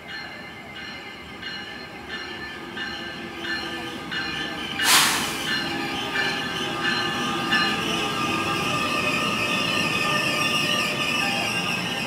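A train approaches and pulls into the station.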